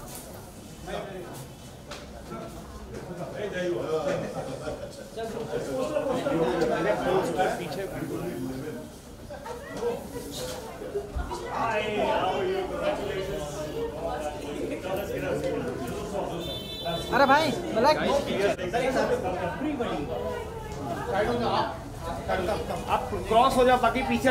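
A crowd of men and women chatter loudly close by.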